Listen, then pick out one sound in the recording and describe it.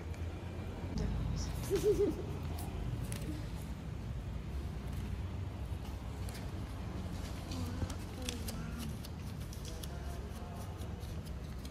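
Paper banknotes rustle as they are counted by hand.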